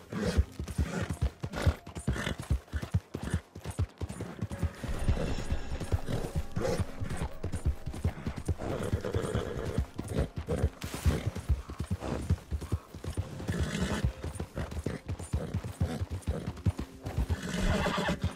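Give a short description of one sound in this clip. A horse gallops over wet ground.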